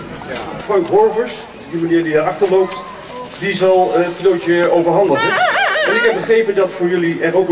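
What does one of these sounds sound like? A man speaks with animation through a microphone and loudspeaker.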